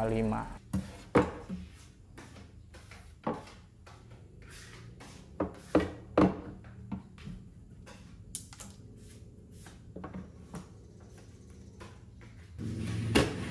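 Wooden panels and metal rails knock and clack as they are fitted.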